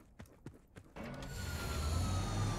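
A heavy vehicle engine starts and rumbles loudly.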